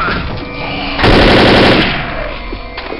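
A rifle fires a rapid burst of gunshots at close range.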